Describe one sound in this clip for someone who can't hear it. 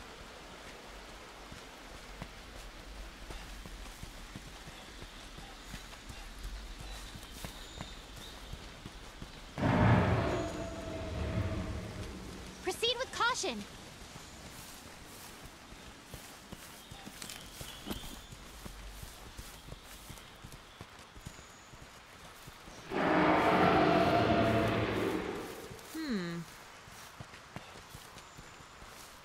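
Footsteps patter over grass and earth.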